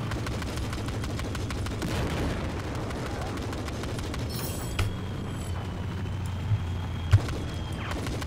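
A gun fires in short, loud bursts.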